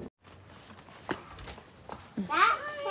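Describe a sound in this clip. A young child speaks with animation close by.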